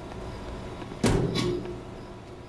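A heavy metal door bangs.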